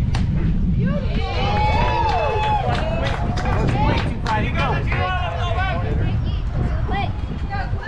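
Young players shout and cheer from across the field.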